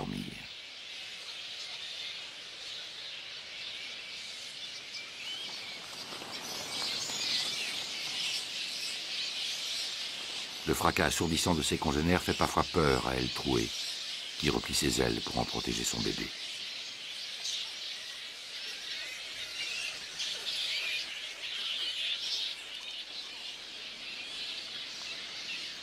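A colony of bats chatters and squeaks steadily in the distance.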